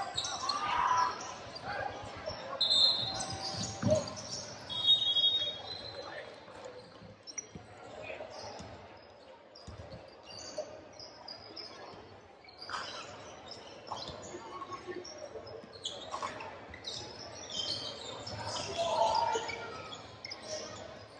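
Spectators chatter nearby in a large echoing hall.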